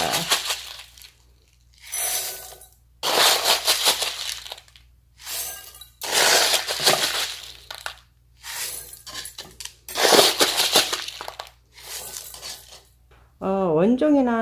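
Small gravel rattles as a plastic scoop digs into it and pours it into pots.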